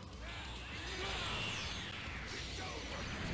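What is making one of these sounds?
An energy blast surges with a loud sweeping whoosh.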